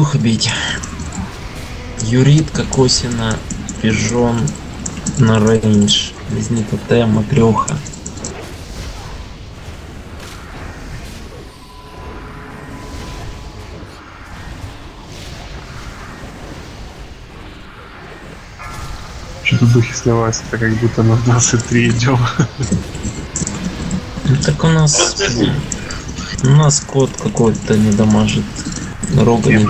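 Magic spells crackle and whoosh amid a clash of battle.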